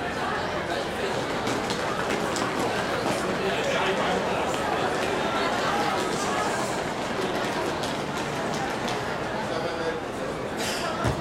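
Many feet stamp and shuffle on hard ground in rough unison.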